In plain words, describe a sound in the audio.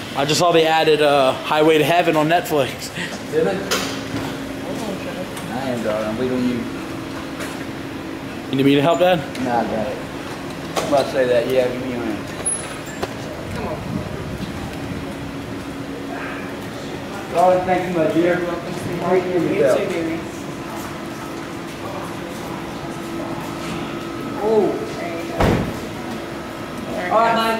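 A man talks close by in a calm voice.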